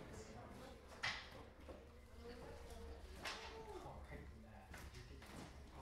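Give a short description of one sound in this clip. Plastic game pieces click on a table.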